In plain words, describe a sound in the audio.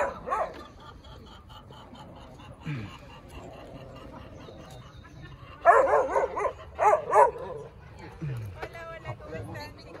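People talk outdoors at a distance.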